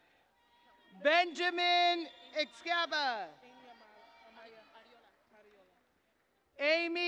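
A woman in the audience shouts and cheers loudly in a large echoing hall.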